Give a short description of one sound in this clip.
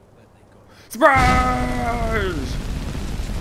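A magic spell bursts out with a loud, crackling, ringing roar.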